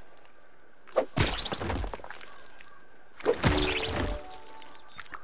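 Heavy blows strike a soft creature with a wet squelch.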